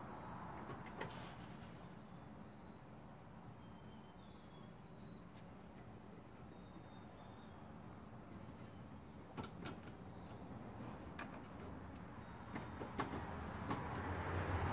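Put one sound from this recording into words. Metal parts clink and tap in a car engine.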